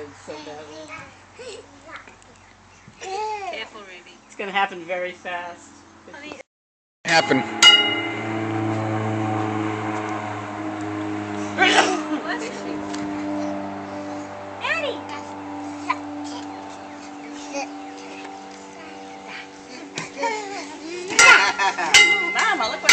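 Small children babble and squeal nearby.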